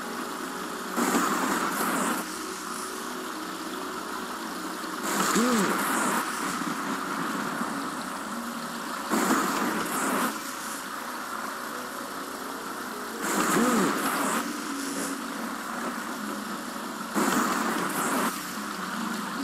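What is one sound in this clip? Electric magic crackles and buzzes in short bursts.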